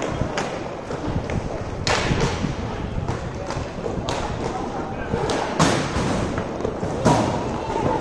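Hockey sticks clack sharply against a ball and the floor.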